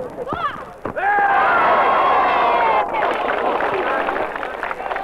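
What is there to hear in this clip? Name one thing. A crowd cheers and laughs outdoors.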